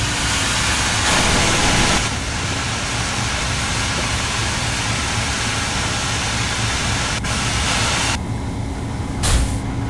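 A steam locomotive chuffs and hisses steam.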